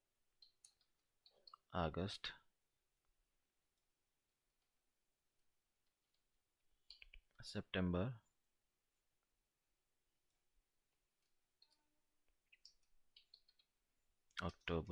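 Keys tap on a computer keyboard.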